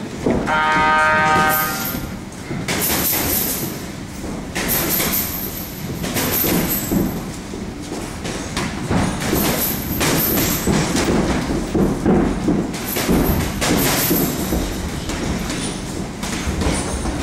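Feet shuffle and thud on a canvas ring floor.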